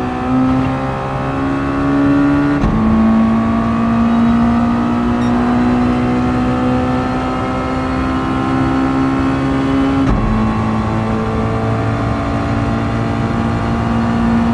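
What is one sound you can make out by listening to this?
A racing car engine roars at high revs, rising in pitch and dropping briefly at each gear change.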